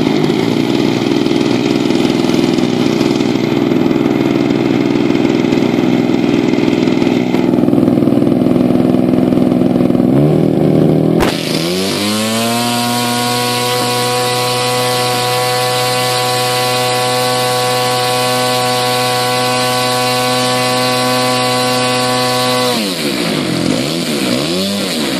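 A small model airplane engine buzzes loudly close by, then drops to a lower, steady idle.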